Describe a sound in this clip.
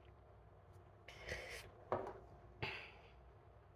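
Cards shuffle and tap together.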